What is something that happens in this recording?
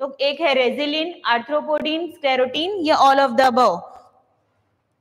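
A young woman speaks clearly and with animation into a close microphone.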